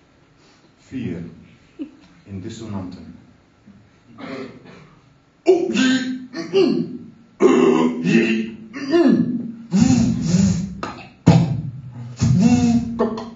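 A middle-aged man speaks expressively into a microphone, his voice growing louder and more forceful.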